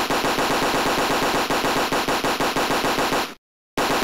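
Explosions boom in short bursts.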